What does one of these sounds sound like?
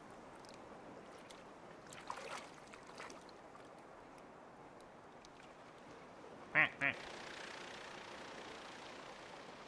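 Water laps gently in a pool.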